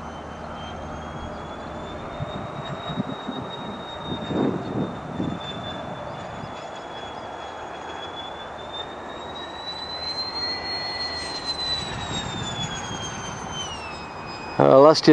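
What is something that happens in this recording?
A jet engine roars steadily overhead with a high whine, rising and falling in pitch.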